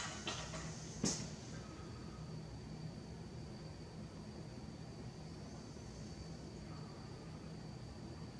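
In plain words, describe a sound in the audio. Metal parts click and clank.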